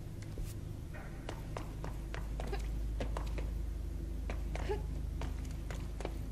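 Footsteps run quickly on a hard floor.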